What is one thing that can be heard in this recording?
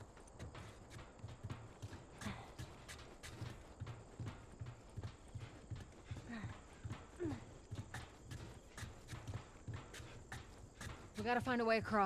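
Footsteps thud quickly on metal stairs and hard ground.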